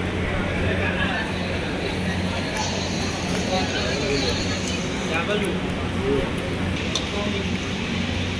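Metal utensils clink against steel plates.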